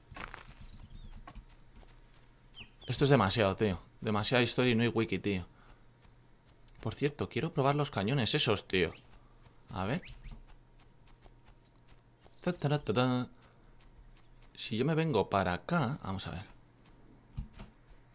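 Soft footsteps patter on grass.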